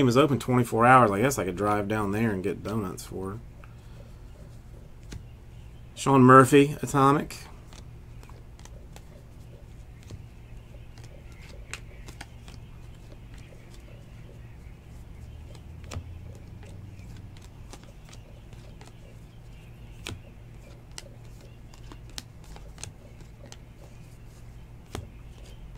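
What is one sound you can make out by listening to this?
Trading cards softly rustle and click as a hand flips through them.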